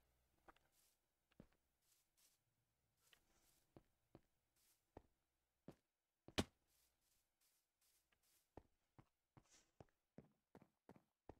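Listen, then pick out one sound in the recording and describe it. Footsteps tap softly on hard ground.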